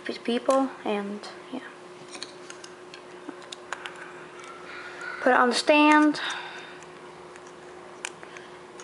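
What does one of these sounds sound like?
Plastic parts click and rattle as hands handle a small device.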